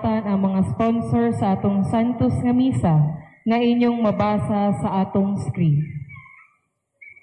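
A young woman sings through a microphone, loud and close.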